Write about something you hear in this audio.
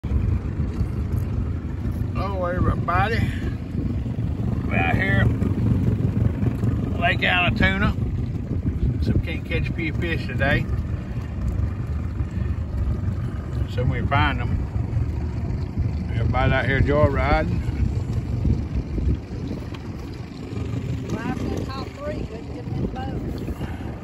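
Water laps against the hull of a moving boat.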